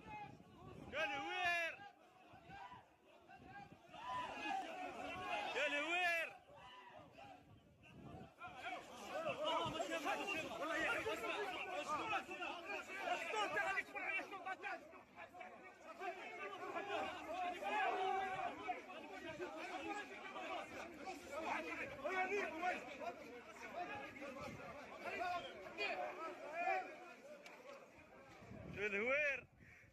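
A crowd of men shout and chant close by, outdoors.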